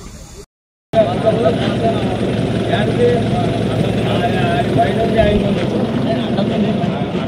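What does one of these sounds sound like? A crowd chatters loudly outdoors.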